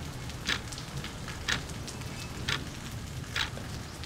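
A water drop falls into a puddle.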